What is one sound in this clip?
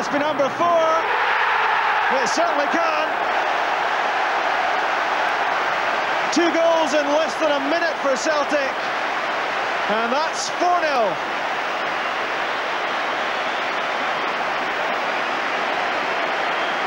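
A large crowd roars and cheers loudly in a stadium.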